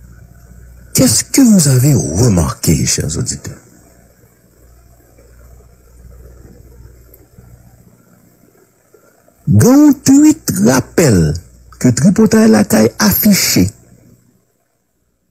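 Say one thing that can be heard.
A man speaks loudly and with animation close to a microphone.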